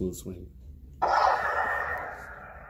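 A toy lightsaber switches on with a loud electronic buzz.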